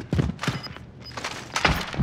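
Hands clatter up a wooden ladder.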